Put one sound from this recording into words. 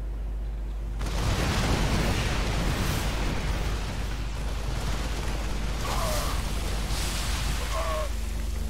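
Gunfire and explosions clatter in a loud battle.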